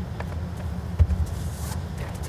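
A bowl thuds softly onto a carpet.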